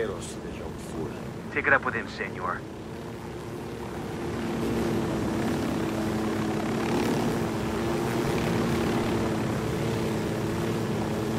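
A helicopter's engine and rotor blades drone steadily, growing louder.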